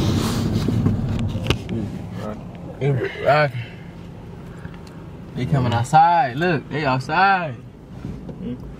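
A car engine hums and tyres rumble on the road from inside the car.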